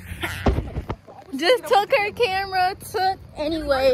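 Young women laugh and shout nearby.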